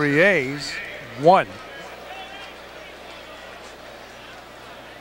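A large crowd murmurs in a stadium.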